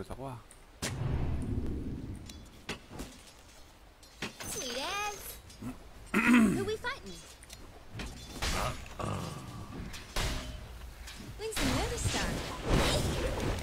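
Game sound effects of clashing blows and spells ring out.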